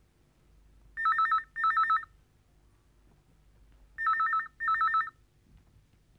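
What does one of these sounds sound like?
A telephone rings in double bursts.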